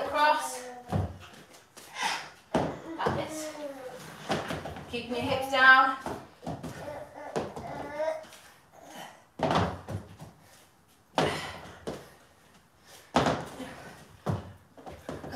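Dumbbells clunk on a hard floor.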